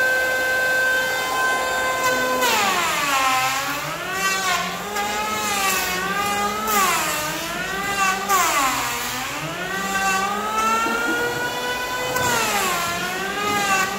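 An electric planer whines loudly, its pitch dipping and rising as it cuts into wood.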